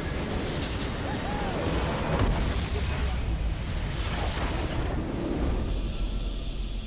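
A game building crumbles with a loud explosion.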